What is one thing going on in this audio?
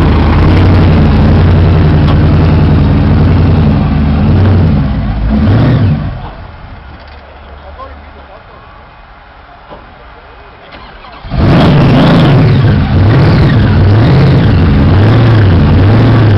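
A big engine idles nearby with a loud, lumpy rumble.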